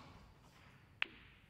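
Snooker balls knock together with a hard clack.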